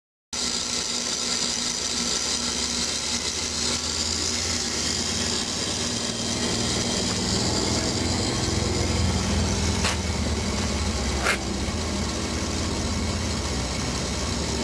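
A car engine idles with a steady low rumble close by.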